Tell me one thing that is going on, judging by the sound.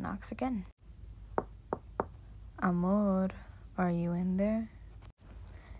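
A teenage boy speaks softly and close by.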